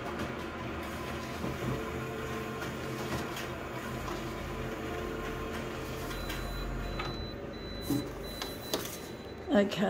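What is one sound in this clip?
A printer whirs and hums steadily as it feeds paper.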